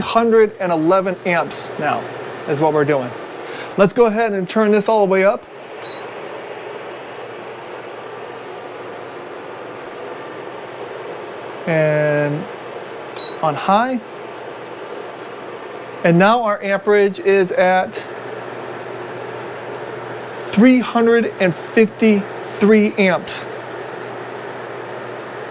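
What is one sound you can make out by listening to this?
A fan heater hums steadily.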